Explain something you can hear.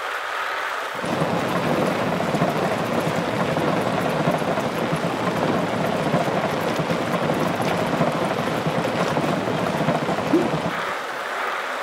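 Bicycle tyres rumble over wooden bridge planks.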